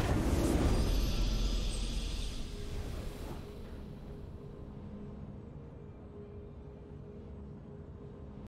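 A triumphant fanfare swells and slowly fades.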